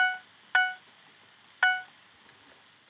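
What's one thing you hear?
A short electronic chime pings several times.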